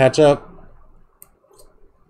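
A stiff plastic card holder clicks and rattles in a hand.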